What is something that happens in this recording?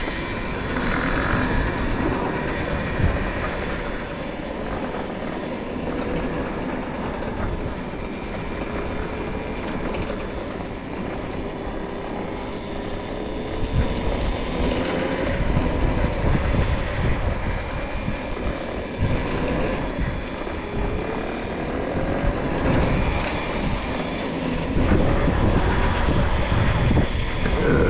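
An electric motorbike motor whines steadily, rising and falling in pitch.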